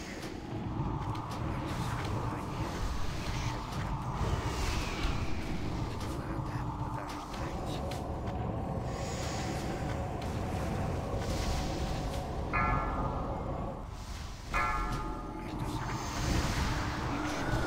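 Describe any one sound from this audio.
Spells crackle and whoosh in a busy video game battle.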